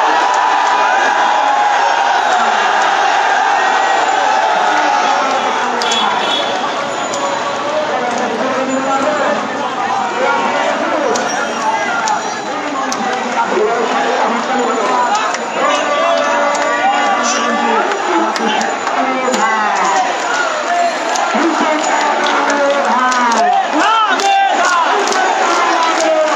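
Men nearby shout excitedly over the crowd.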